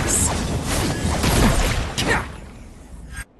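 Magic blasts crackle and roar in a fight.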